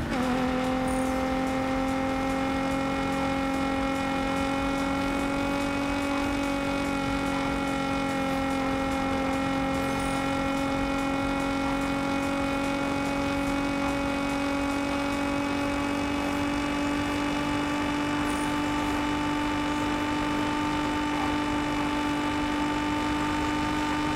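A sports car engine roars steadily at high speed, its pitch rising slowly.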